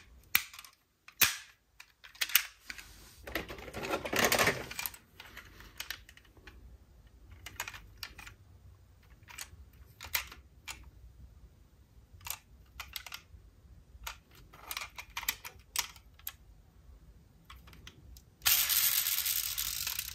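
Small plastic toy car doors click open and shut.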